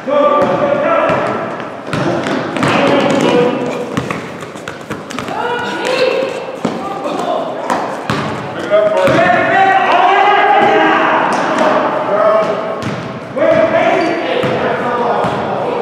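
A basketball bounces on a hard court with a hollow echo.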